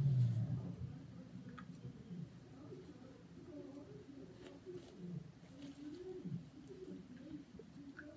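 A paper tissue rustles and crinkles.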